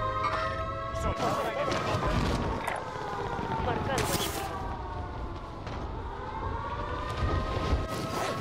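Wind rushes past during a parachute descent.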